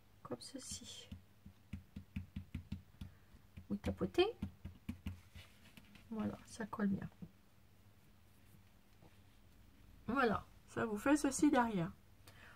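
Stiff paper lace rustles and taps softly as it is handled.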